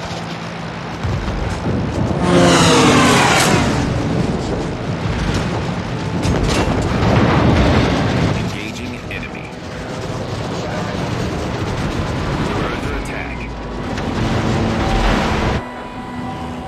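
Anti-aircraft guns fire in rapid bursts.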